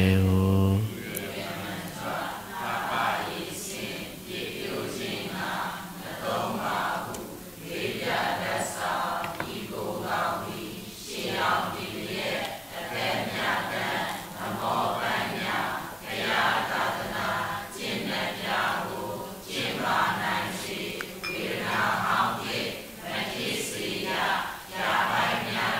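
An elderly man speaks calmly and slowly into a microphone.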